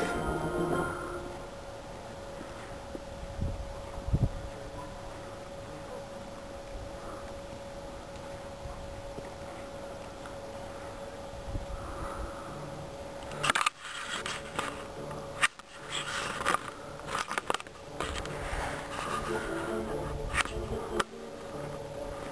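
A horse trots with soft hoofbeats on sand.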